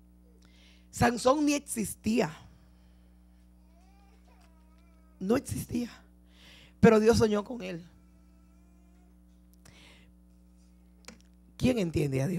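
A woman speaks into a microphone in short bursts, with pauses between phrases.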